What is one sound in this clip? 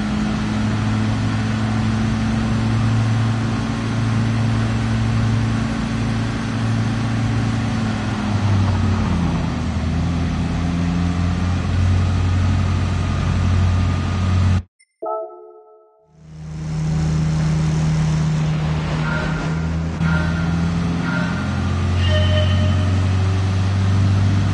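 A car engine drones steadily, its pitch rising and falling with speed.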